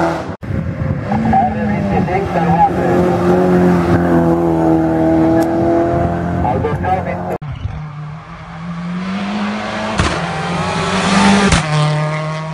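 A car engine revs up and down between gear changes.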